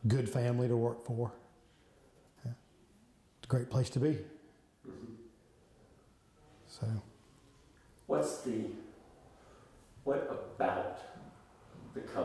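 A middle-aged man speaks calmly and closely into a microphone, with pauses.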